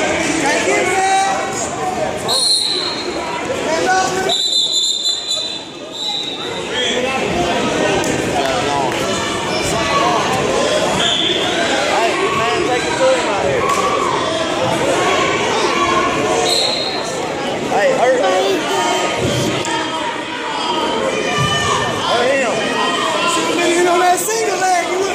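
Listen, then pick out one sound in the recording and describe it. A crowd of spectators chatters and cheers loudly in a large echoing gym.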